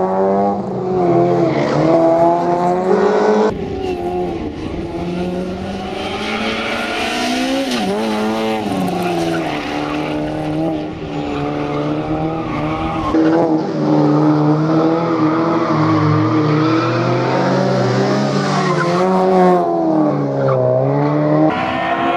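A race car engine roars and revs hard, rising and falling in pitch.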